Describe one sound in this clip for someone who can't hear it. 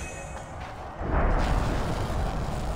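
A blade rips down through a cloth banner with a loud tearing rush.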